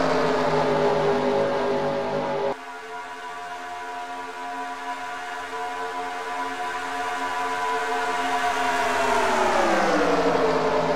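Race car engines roar in a pack and drone steadily.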